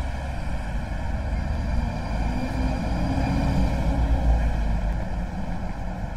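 A vehicle engine drones past and fades.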